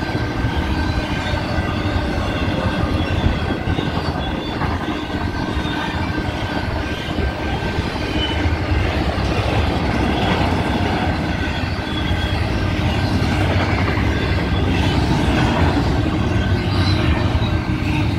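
A crossing bell rings steadily.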